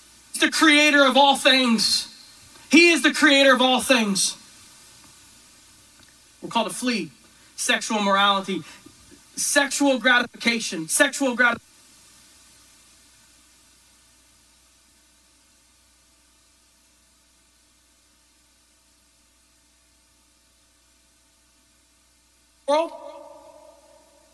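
A middle-aged man speaks with animation through a microphone and loudspeakers, echoing in a large hall.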